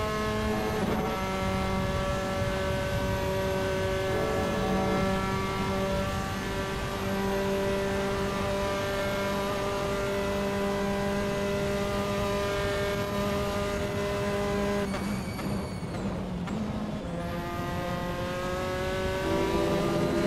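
A racing car engine roars at high revs, drops in pitch under braking and revs up again.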